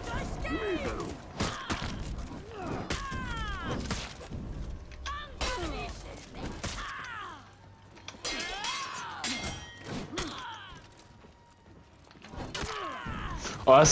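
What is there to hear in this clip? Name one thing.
Swords clash and ring with metallic strikes.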